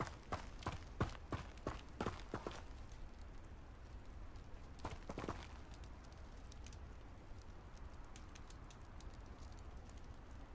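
Keyboard keys click softly.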